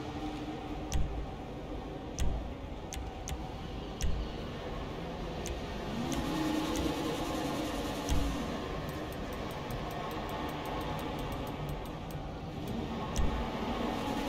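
Short menu clicks tick in a video game.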